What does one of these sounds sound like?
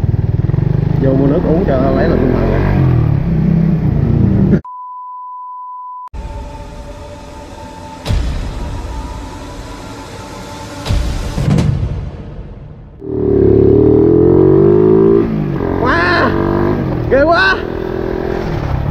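A motorcycle engine revs up sharply several times.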